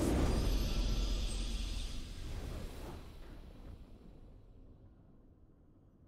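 A triumphant game fanfare rings out and slowly fades away.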